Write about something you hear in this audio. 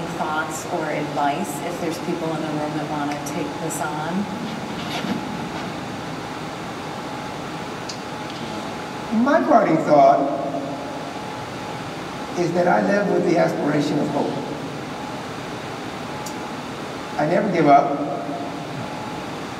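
An elderly man speaks calmly through a microphone in a large hall.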